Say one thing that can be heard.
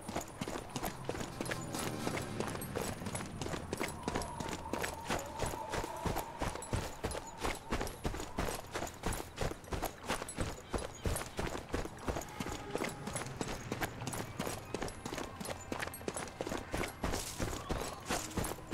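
Footsteps crunch quickly over grass and stone.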